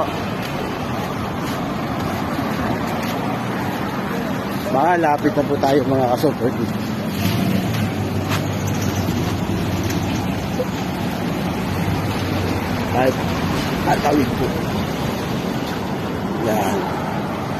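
Car engines hum as traffic passes close by.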